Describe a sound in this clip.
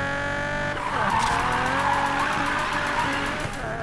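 Tyres screech as a car drifts around a bend.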